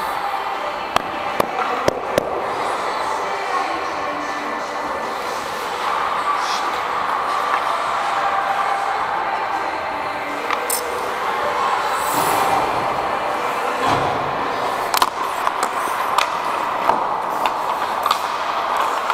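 Hockey sticks clack sharply against a puck now and then.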